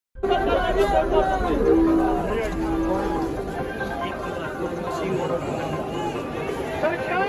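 A large crowd of men chants and shouts outdoors.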